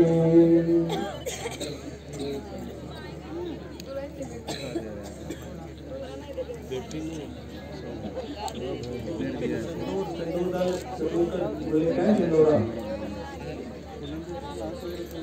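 A man speaks and chants into a microphone, heard through loudspeakers.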